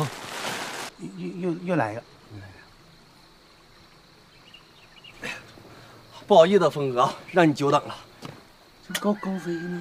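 A middle-aged man speaks quietly.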